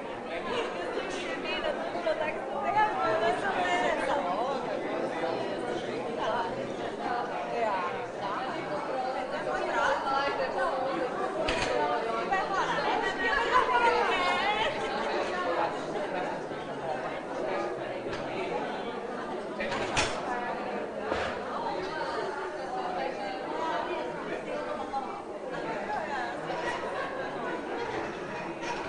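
A crowd of men and women chatter all around in an echoing room.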